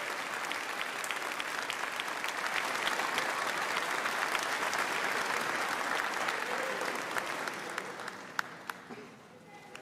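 An audience applauds loudly in a large hall, then the clapping fades away.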